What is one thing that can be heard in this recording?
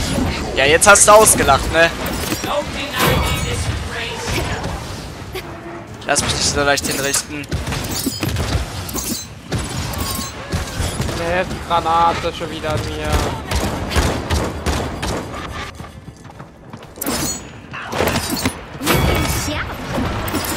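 Game sound effects whoosh and chime.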